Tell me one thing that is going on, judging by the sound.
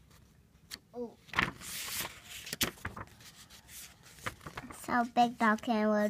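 Book pages rustle and flip as they are turned.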